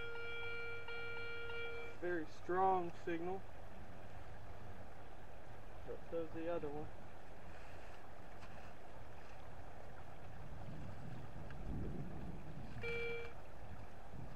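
A metal detector gives a steady electronic beep.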